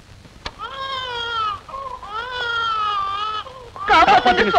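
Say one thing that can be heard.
A woman wails in long, drawn-out cries.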